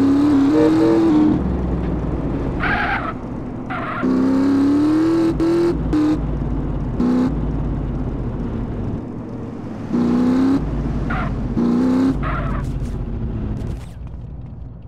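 A motorcycle engine revs and whines, rising and falling as it speeds along.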